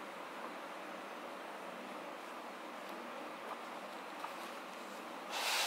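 Paper pages rustle as a book's pages are turned by hand.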